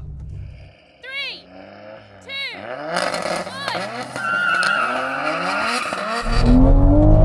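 Sports car engines rev loudly in the open air.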